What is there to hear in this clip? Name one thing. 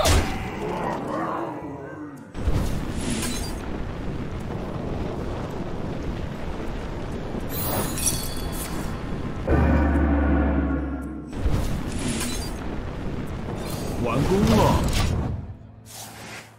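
Magical chimes and whooshes ring out as game cards are played.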